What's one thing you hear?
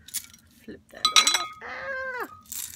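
Small buttons clink and rattle together in a hand.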